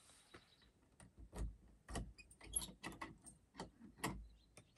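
Objects knock and rustle close by.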